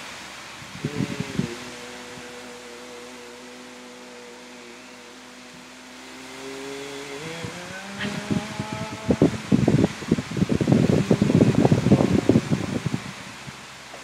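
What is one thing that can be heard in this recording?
A person moves about close by, with rustling and thumping.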